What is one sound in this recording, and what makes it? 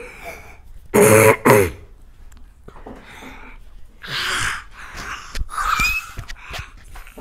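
A young boy shouts loudly.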